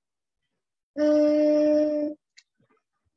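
A child sings a long held note over an online call.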